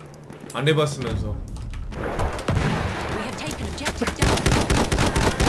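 Rapid gunshots crack from a game.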